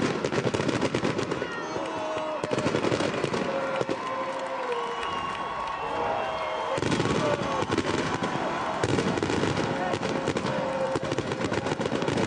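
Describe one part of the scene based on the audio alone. Fireworks crackle and bang overhead.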